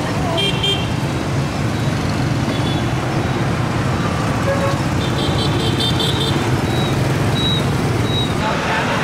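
Motorbike engines hum and buzz past in busy traffic.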